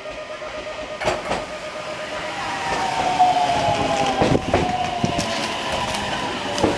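A train approaches and rumbles past close by.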